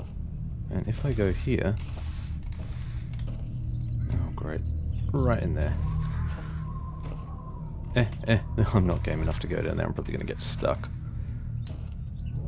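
Leafy branches rustle and brush past.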